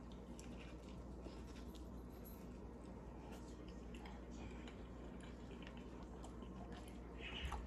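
A young woman chews food close to a microphone with soft, wet mouth sounds.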